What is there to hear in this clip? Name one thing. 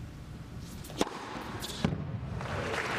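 A tennis racket strikes a ball with a sharp pop.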